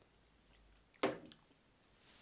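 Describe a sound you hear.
A glass clinks against a table.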